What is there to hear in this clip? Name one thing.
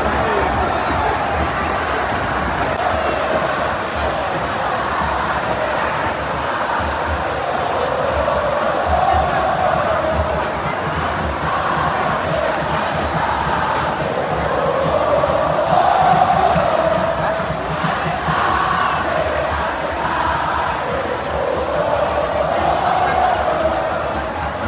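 A large stadium crowd chants and sings loudly together in unison, echoing through the open air.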